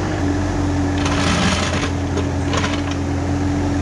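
A boulder scrapes and grinds against dirt as an excavator bucket pushes it.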